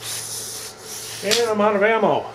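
A pneumatic nail gun hisses with a burst of air.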